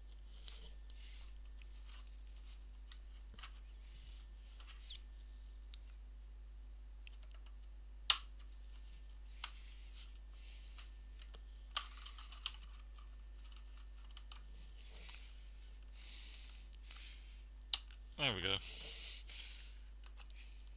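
Small tools tap and scrape on a laptop keyboard.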